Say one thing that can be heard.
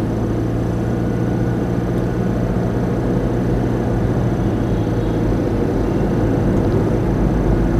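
A car engine hums steadily as the car drives along a road.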